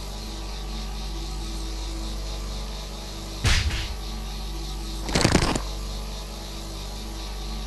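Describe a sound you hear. Magic zaps crackle.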